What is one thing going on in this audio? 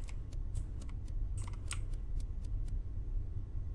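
Quick soft footsteps patter.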